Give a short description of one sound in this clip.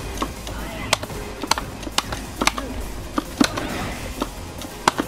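Punches and kicks land with sharp smacks in a fighting game.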